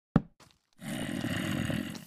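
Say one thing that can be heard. A zombie groans nearby.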